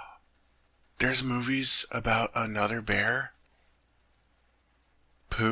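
A man speaks softly and close to the microphone.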